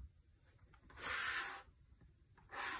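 A spiral notebook slides across a table.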